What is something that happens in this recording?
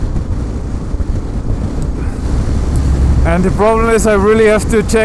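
A motorcycle engine drones and then revs up to a high, steady whine.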